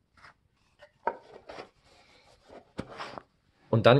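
A lidded cardboard box is handled, its lid tapping and sliding shut.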